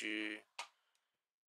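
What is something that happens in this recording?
A young man speaks briefly and close to a microphone.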